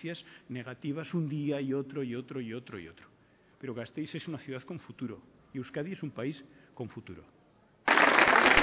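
A man speaks firmly into a microphone, heard through loudspeakers outdoors.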